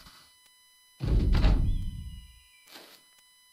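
Game sound effects whoosh and thud.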